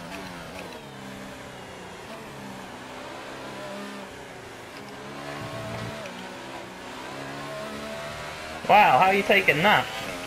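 A racing car engine whines at high revs, rising and dropping as it shifts gears.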